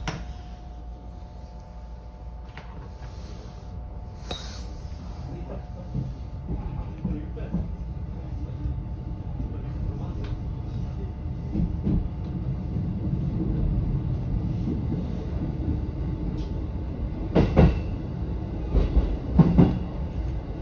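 A train rumbles steadily along the tracks, growing louder as it speeds up.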